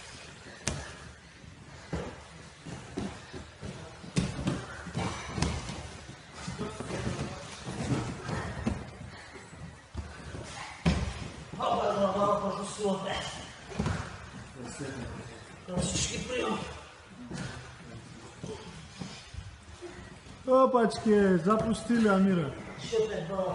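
Bodies thump and scuffle on a padded mat.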